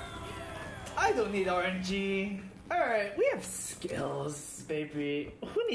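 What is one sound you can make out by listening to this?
A young man cheers loudly close to a microphone.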